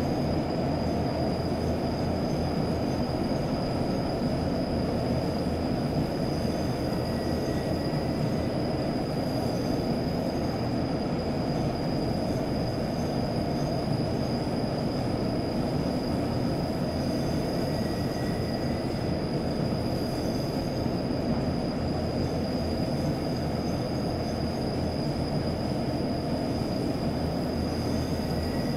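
Train wheels rattle over the rails.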